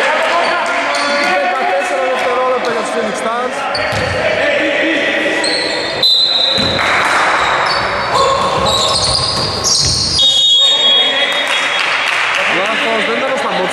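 Men shout and call out to each other across an echoing gym.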